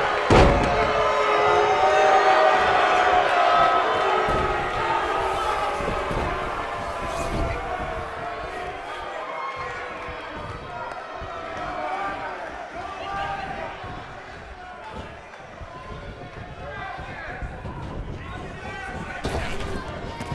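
A body slams onto a wrestling ring's mat with a heavy thud.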